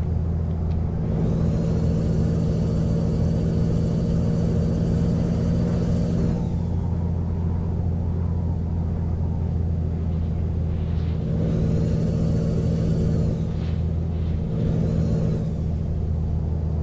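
A truck engine whines high as it pulls.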